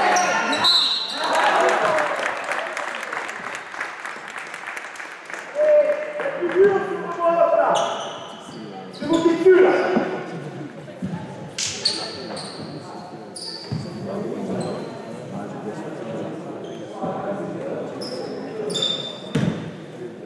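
Sneakers squeak sharply on a hard court floor in a large echoing hall.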